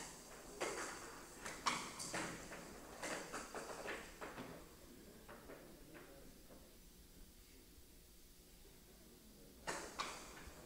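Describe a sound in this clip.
A rattling ball knocks sharply against paddles and the wooden sides of a table.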